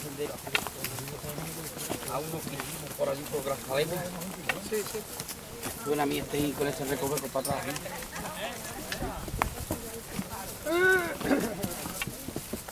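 Footsteps crunch on a rocky dirt trail.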